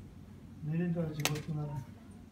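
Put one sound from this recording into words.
A plastic lid snaps shut.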